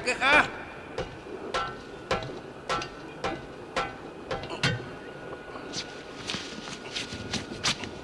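Feet clank on a metal ladder rung by rung.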